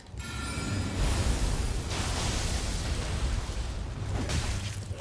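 A magic spell bursts with a loud rushing whoosh.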